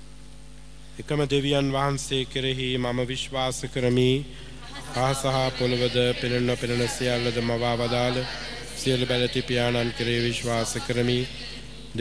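A man speaks steadily into a microphone, heard through loudspeakers in a large hall.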